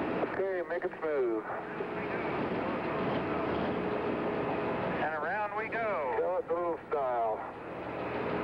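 A man speaks clearly in short bursts.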